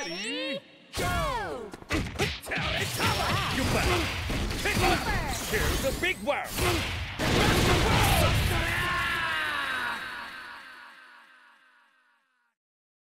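Fiery special moves whoosh and roar with swirling effects.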